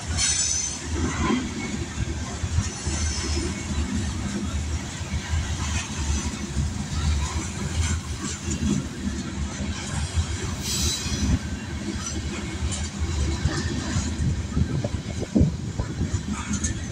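A freight train of hopper cars rumbles past close by.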